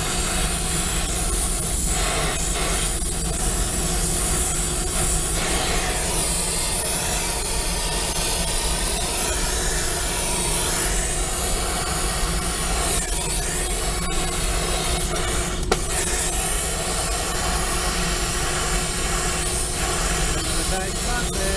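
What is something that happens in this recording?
A gas torch flame hisses and roars steadily.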